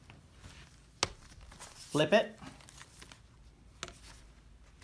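A laptop is turned over and set down on a table with a knock.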